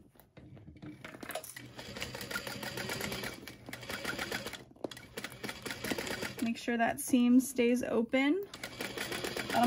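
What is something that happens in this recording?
A sewing machine runs, stitching with a rapid whirring hum.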